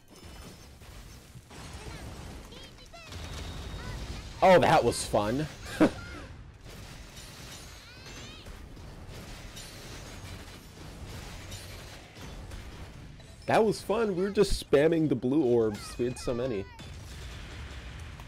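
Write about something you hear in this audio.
Explosions boom and crackle in quick bursts.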